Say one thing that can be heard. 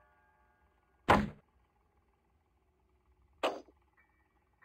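Wooden planks drop onto a floor with hollow thuds.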